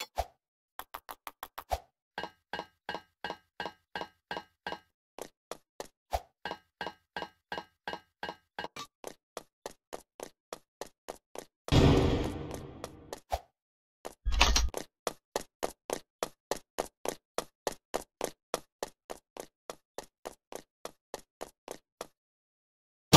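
A video game character's footsteps tap in quick succession.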